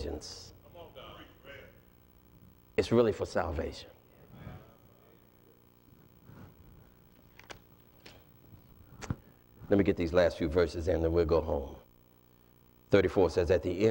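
A man speaks with animation through a microphone in an echoing room, pausing between phrases.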